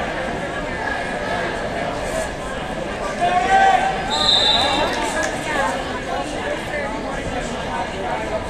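Wrestlers' shoes squeak on a mat.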